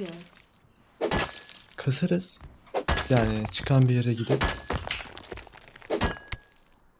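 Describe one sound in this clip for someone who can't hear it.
A stone hatchet strikes a rock with sharp knocks.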